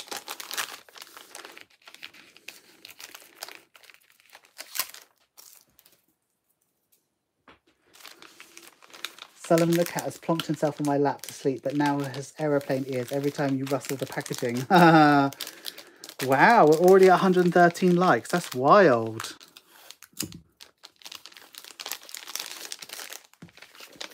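A plastic sleeve crinkles and rustles as it is handled.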